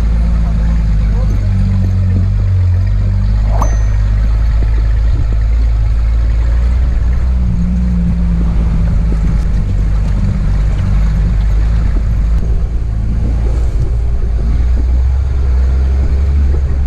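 An engine drones steadily, close by.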